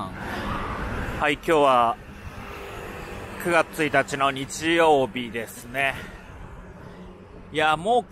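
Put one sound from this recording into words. Motor scooters pass by on a street.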